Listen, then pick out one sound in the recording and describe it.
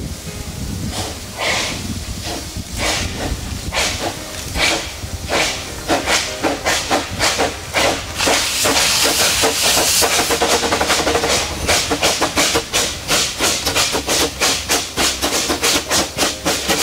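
A steam locomotive chuffs rhythmically, growing louder as it approaches.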